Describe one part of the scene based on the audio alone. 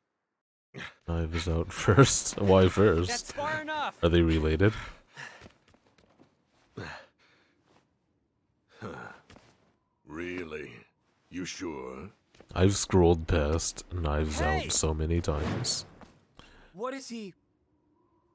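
A man speaks in a deep, dramatic voice.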